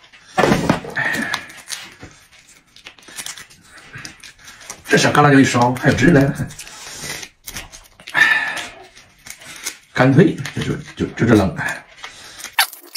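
A middle-aged man talks animatedly close to the microphone.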